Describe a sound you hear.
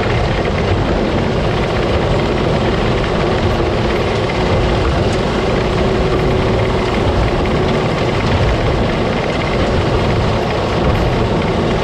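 Dry crop stalks rustle and patter as they pour through the machine.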